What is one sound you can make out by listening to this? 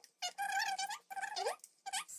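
A spoon clinks against a glass mug.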